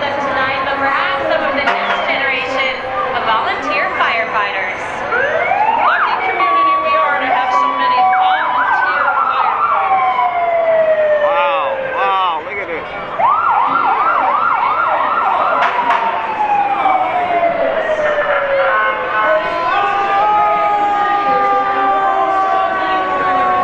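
Sirens wail and whoop loudly close by.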